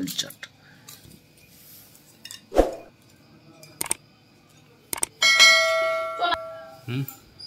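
Metal spoons clink against metal plates.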